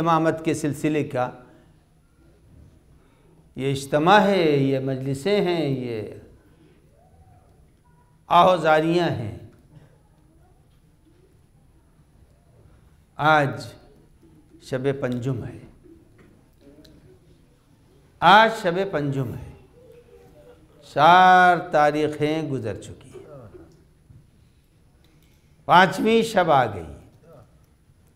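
An elderly man speaks slowly into a microphone, in short phrases with long pauses.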